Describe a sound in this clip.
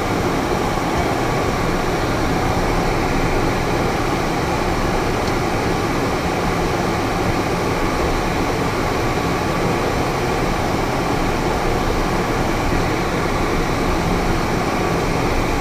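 A small plane's engine drones steadily from inside the cabin.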